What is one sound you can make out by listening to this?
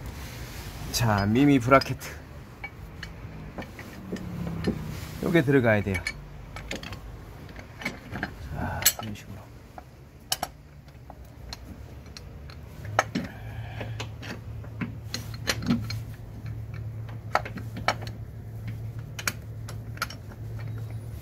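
An engine cover knocks and clicks as it is fitted into place.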